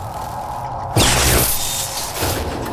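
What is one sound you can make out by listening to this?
Electricity crackles and sparks in a sudden loud burst.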